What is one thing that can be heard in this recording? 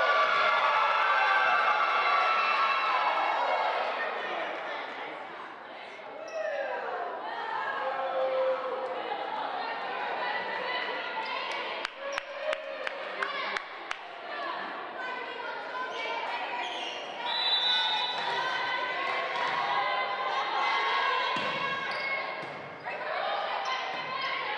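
Young women call out to each other on the court.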